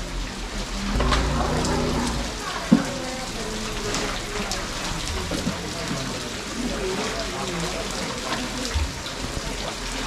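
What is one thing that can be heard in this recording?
Elephants slurp and splash water.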